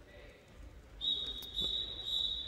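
A referee's whistle blows sharply in a large echoing hall.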